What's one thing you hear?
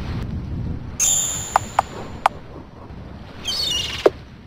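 Short electronic menu blips and chimes sound.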